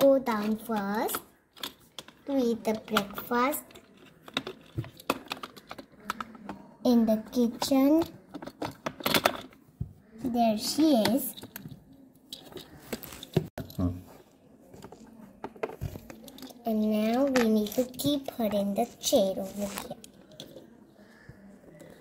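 Plastic toy pieces knock and click as they are handled.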